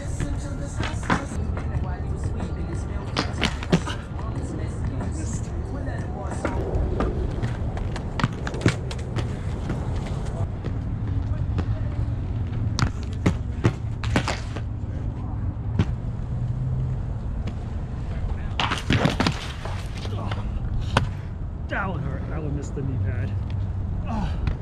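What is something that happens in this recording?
Inline skate wheels roll and rumble over rough concrete.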